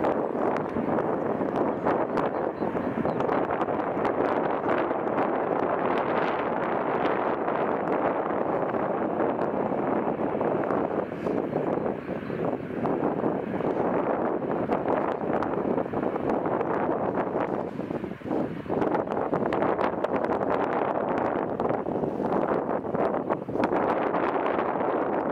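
Jet engines roar steadily as an airliner taxis close by.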